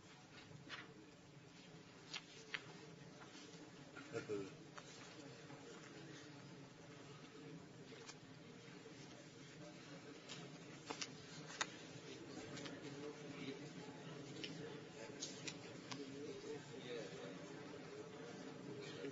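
A crowd of people murmurs and talks quietly in a large room.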